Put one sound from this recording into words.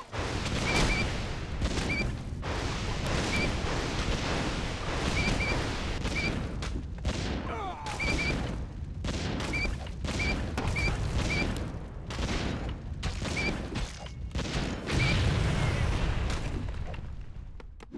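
Magic blasts and explosions boom and crackle.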